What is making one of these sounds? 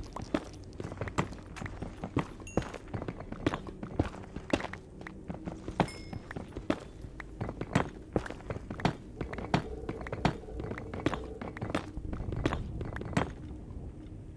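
A pickaxe chips rapidly at stone blocks with sharp, repeated knocks.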